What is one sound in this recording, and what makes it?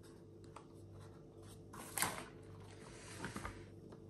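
A cable rustles and taps against a table.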